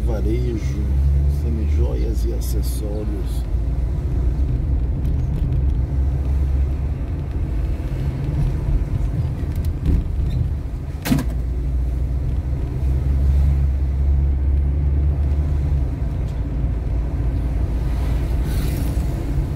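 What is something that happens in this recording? A car engine hums steadily from inside the car as it drives along a road.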